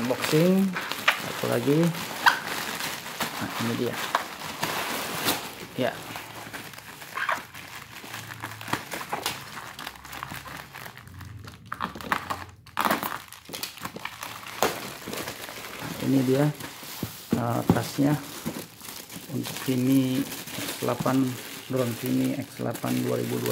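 Plastic wrapping crinkles and rustles as hands handle a package.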